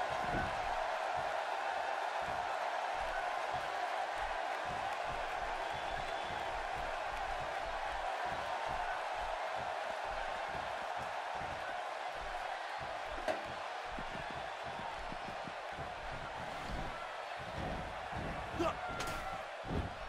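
A large crowd cheers and murmurs steadily in a big arena.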